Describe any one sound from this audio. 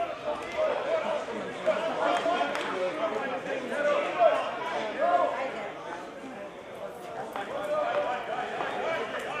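Several men talk and call out to each other outdoors.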